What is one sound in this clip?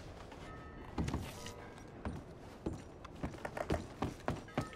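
Footsteps thud on wooden boards.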